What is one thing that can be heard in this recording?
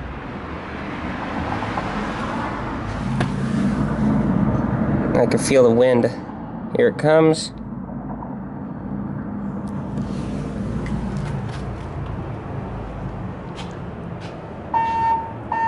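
An elevator hums and rumbles steadily as it moves.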